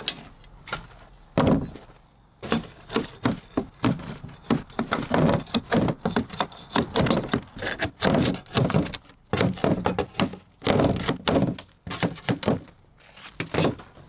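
Metal snips cut through thin sheet metal with sharp crunching snips.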